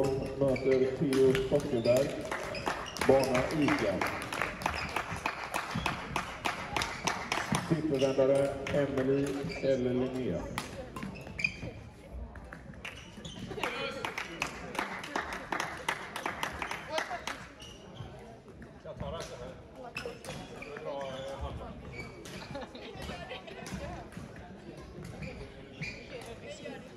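A shuttlecock is struck back and forth with rackets in a large echoing hall.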